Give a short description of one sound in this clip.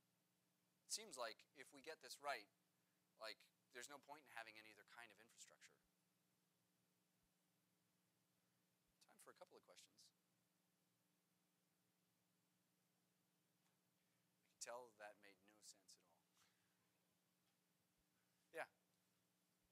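A man speaks calmly through a microphone, pausing often.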